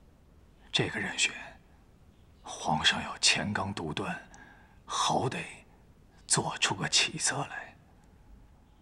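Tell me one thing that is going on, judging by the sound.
A middle-aged man speaks in a low, serious voice close by.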